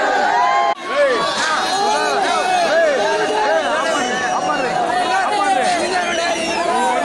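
A large crowd of young men shouts and cheers loudly outdoors.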